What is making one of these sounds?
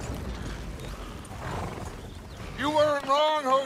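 Wagon wheels rumble over rough ground.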